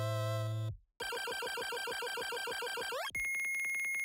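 Rapid electronic blips tick as a game score counts up.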